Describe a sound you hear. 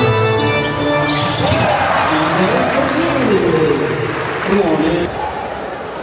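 A large indoor crowd cheers and shouts in an echoing hall.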